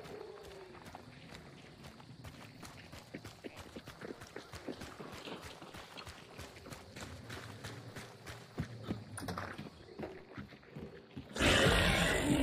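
Footsteps crunch steadily over dirt and onto wooden boards.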